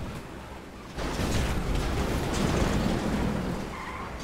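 A sports car crashes and scrapes against a wall.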